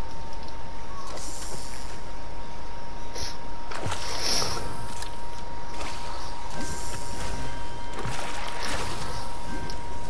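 A fishing line plops into water with a splash.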